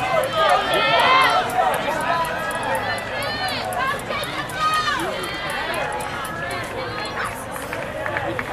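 Nearby young women shout encouragement loudly.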